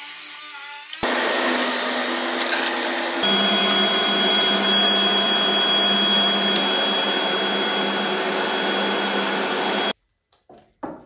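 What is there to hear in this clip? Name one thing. A large sanding machine hums and roars steadily.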